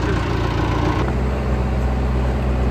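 A bulldozer engine idles with a steady low rumble.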